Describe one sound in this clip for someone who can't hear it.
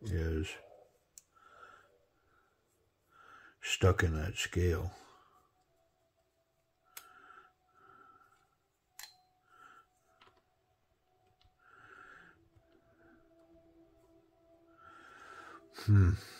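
A small screwdriver clicks and scrapes against a screw.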